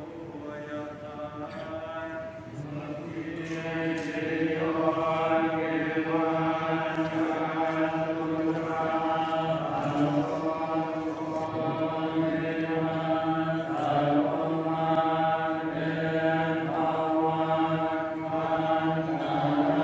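Many men chant together in a low, steady drone in a large echoing hall.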